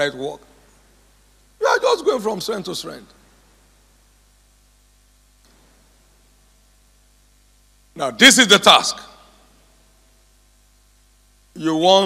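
An elderly man speaks with animation through a microphone in a large echoing hall, pausing between phrases.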